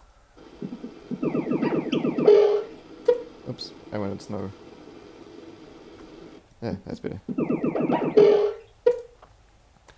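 A short electronic game jingle plays.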